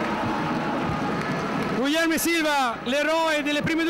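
A man speaks into a handheld microphone in a large echoing hall.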